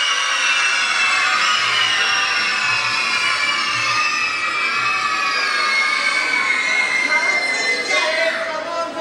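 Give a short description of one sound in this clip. A crowd of young children shout and cheer loudly in a large echoing hall.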